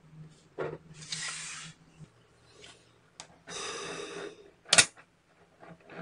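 Small metal magnet balls click and clatter against each other.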